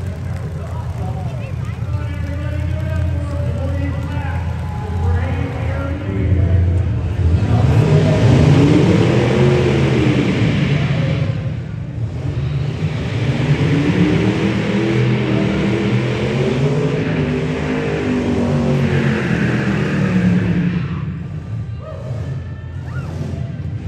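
A car engine roars loudly and revs up and down in a large echoing hall.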